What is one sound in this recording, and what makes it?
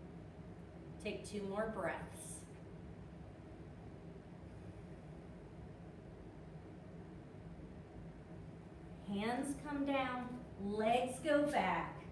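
A woman speaks calmly in a room with a slight echo.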